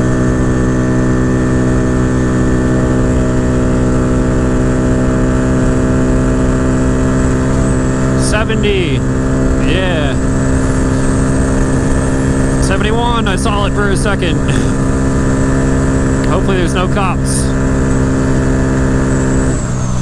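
A motorcycle engine drones steadily at high speed.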